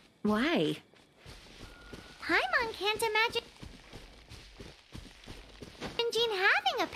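Footsteps run softly through grass.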